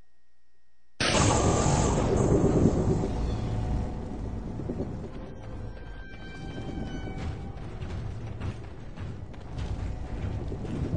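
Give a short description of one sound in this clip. A magic spell hums and whooshes loudly.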